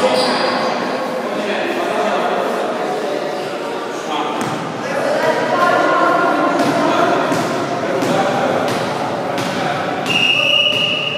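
Young men call out and talk with one another in a large echoing hall.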